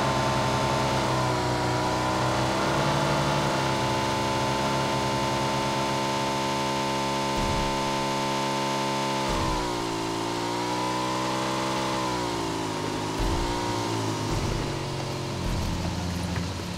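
A motorbike engine hums steadily, its pitch rising and falling as it revs.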